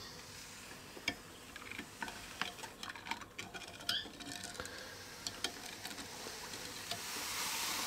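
A spoon stirs thick yogurt in a glass bowl, tapping softly against the glass.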